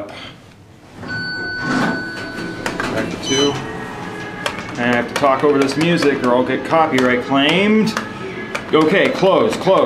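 Elevator buttons click as they are pressed.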